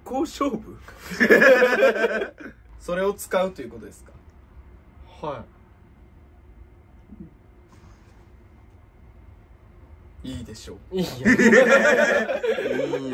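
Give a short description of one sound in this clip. Two young people laugh together.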